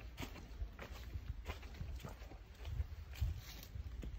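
Footsteps crunch on a dirt path outdoors.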